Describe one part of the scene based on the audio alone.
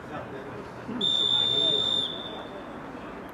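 A referee's whistle blows a sharp, steady blast.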